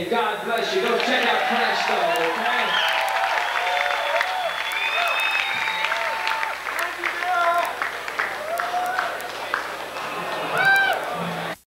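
A crowd cheers, whistles and screams loudly in a large space.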